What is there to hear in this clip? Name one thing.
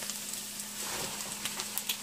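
Diced potatoes tumble into a sizzling pan.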